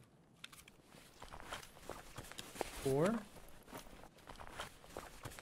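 A man speaks close to a microphone in short, casual bursts.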